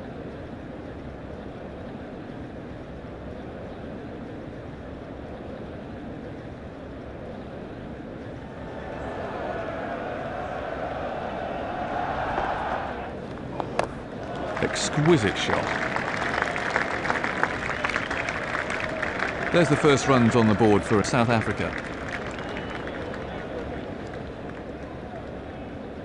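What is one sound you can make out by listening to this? A large crowd murmurs steadily.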